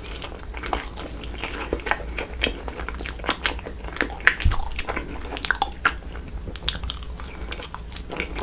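A young man chews soft food with wet, sticky sounds close to a microphone.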